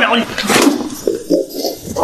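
A young man thuds onto the floor.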